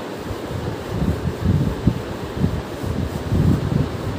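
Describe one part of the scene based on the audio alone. A cloth wipes across a whiteboard with a squeaky rubbing.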